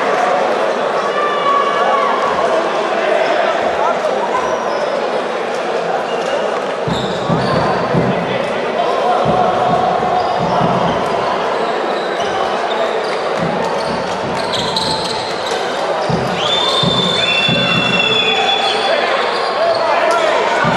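A crowd murmurs and calls out in a large echoing hall.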